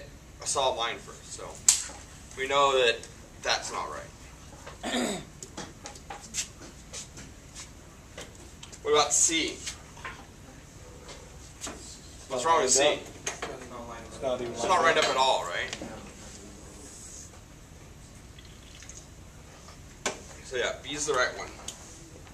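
A man speaks calmly in a lecturing tone, close by.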